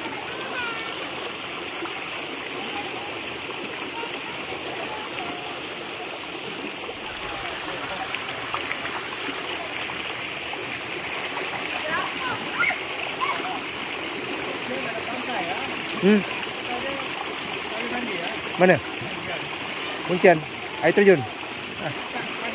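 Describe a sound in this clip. A stream flows and rushes steadily outdoors.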